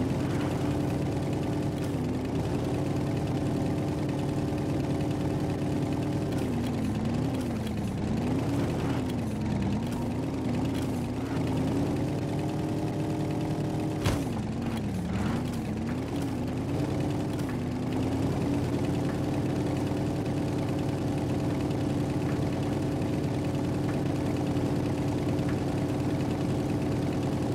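A hovering vehicle's engine hums steadily, its pitch wavering up and down at times.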